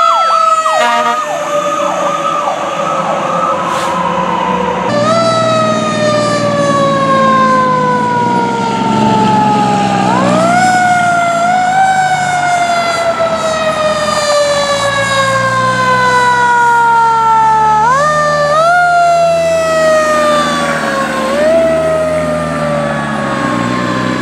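A heavy truck engine rumbles as it drives past.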